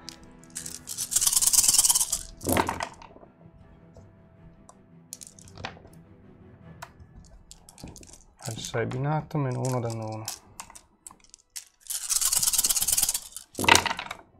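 Dice rattle and clatter as they are rolled onto a tray.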